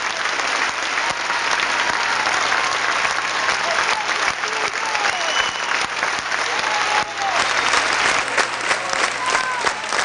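People in a crowd cheer and whistle.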